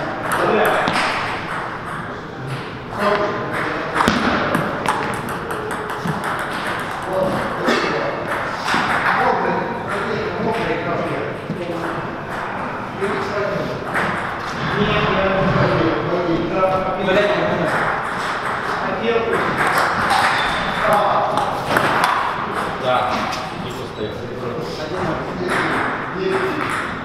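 A table tennis ball clicks back and forth on a table and paddles in an echoing hall.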